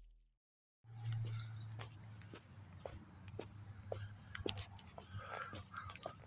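Footsteps tap on a paved path outdoors.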